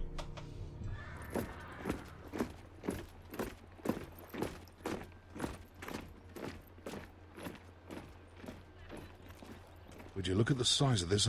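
Soldiers' boots tramp in a steady marching rhythm.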